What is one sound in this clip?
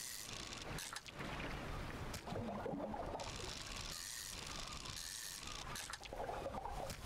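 Water laps gently around a small boat.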